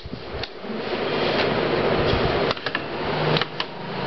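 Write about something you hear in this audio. A plastic meter knocks and clicks as it is handled.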